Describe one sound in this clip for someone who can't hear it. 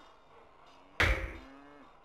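A heavy thud sounds as a building is placed.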